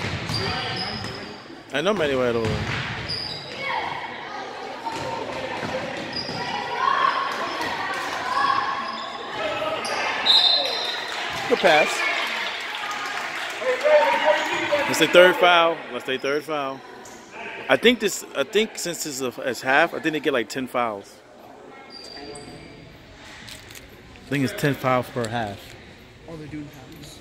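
Spectators shout and cheer in a large echoing gym.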